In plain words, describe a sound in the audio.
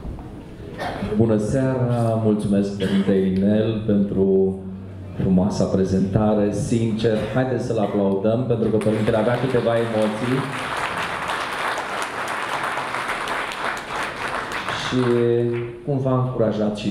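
An elderly man speaks through a microphone and loudspeakers in a large echoing hall.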